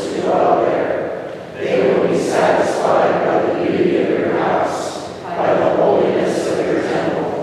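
A woman reads aloud into a microphone in a large echoing hall.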